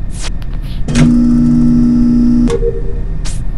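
A game's rubbish chute rumbles and hums loudly.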